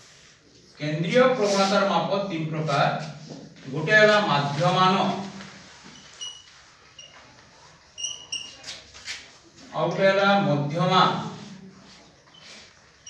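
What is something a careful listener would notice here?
A man speaks loudly and clearly, with pauses.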